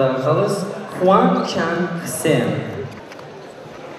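A man announces loudly over a loudspeaker in a large echoing hall.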